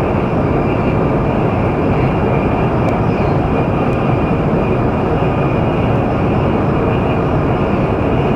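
A high-speed train rumbles steadily along the tracks.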